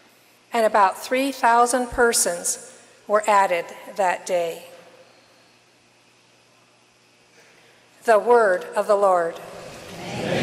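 An elderly woman reads out calmly into a microphone in a large echoing hall.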